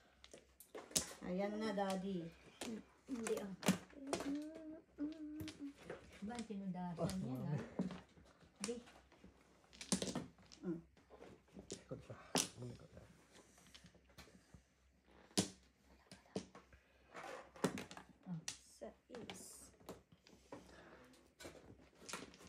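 Mahjong tiles click and clack against each other on a table.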